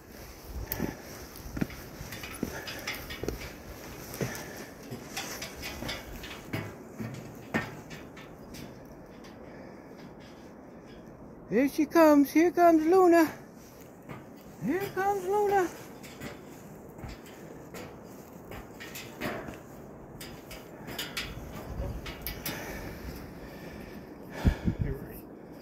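A dog's claws clatter on metal stair steps.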